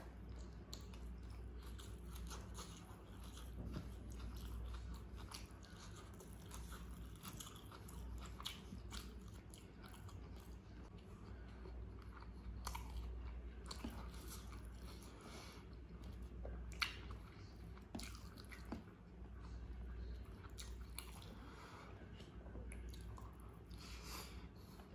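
A man chews food noisily close to a microphone.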